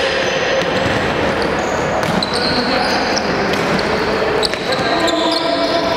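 Young men shout to one another across an echoing hall.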